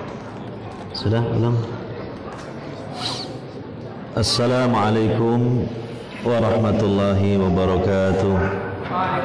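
A man chants a recitation in a loud, drawn-out voice close by.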